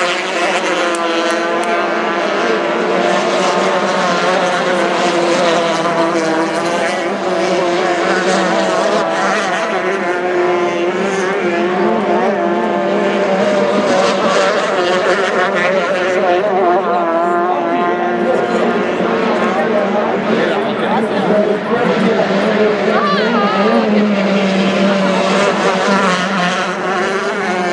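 Racing hydroplane outboard engines scream at full throttle.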